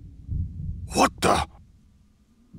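A man exclaims in surprise.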